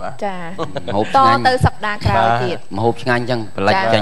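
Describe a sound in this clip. A young woman talks calmly through a microphone.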